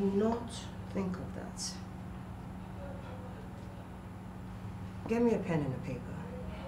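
A woman speaks with emotion nearby.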